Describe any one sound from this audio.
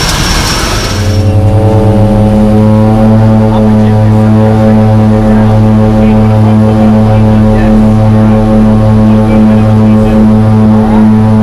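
An aircraft engine drones steadily inside a cabin.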